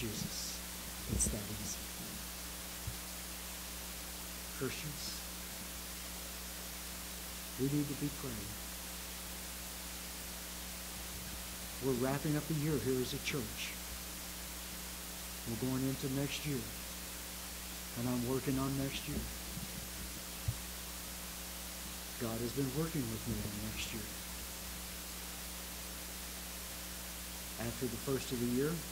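An elderly man speaks slowly and calmly into a microphone, with long pauses, in a room with a slight echo.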